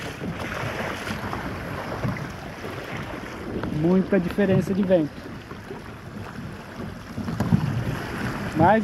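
Water splashes and rushes against a small boat.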